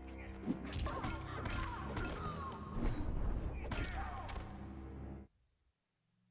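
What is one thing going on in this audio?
Loud, dramatic game music plays, then cuts off suddenly.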